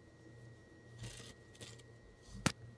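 Fabric rustles as it is handled close by.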